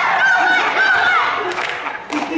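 A young girl shrieks playfully in an echoing hall.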